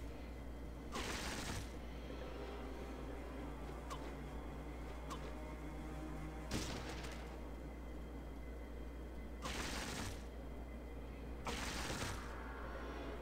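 Gunfire bursts out in short volleys.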